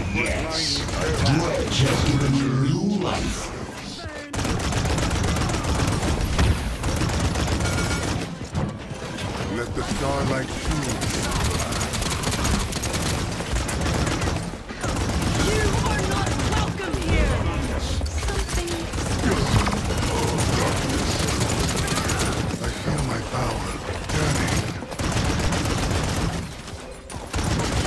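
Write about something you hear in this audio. Game sound effects crackle and whoosh throughout.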